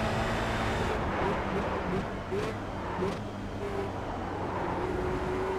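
A racing car engine revs down as it brakes into a corner.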